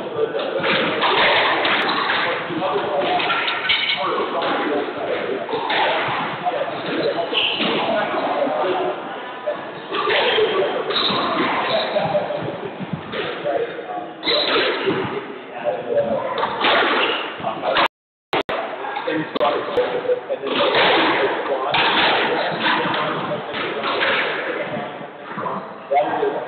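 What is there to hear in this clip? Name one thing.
A squash ball smacks sharply against a wall.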